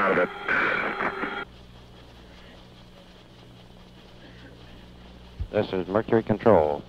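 An old vinyl record hisses and crackles faintly as it plays.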